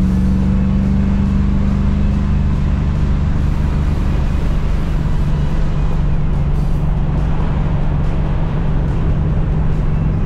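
Wind and road noise rush past the open window.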